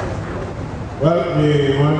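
A man begins speaking into a microphone over loudspeakers.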